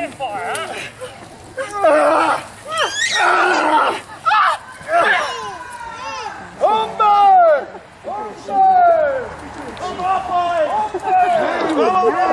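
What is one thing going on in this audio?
Children shout and cheer excitedly close by.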